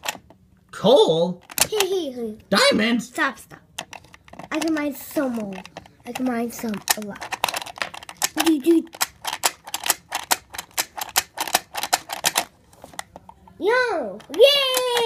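Small plastic blocks click and snap together.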